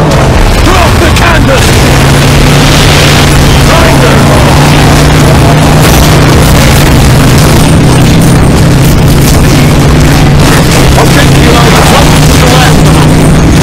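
Heavy gunfire rattles in rapid bursts.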